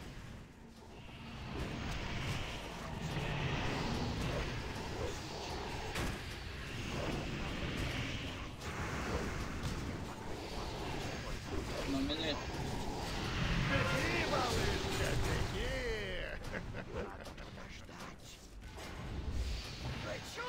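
Magic blasts crackle and boom in a fierce fantasy battle.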